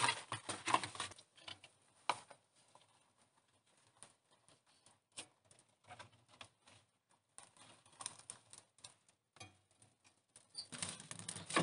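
Wood knocks and clatters as kindling is handled.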